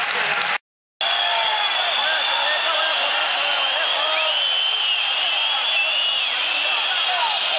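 A large crowd chants and whistles in a big open stadium.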